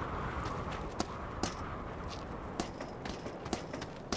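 Hands and feet knock on a wooden ladder while climbing.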